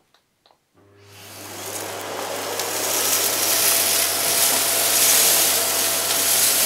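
A vacuum cleaner roars loudly.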